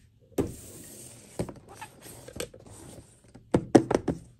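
Hands handle a cardboard box with light knocks and scrapes.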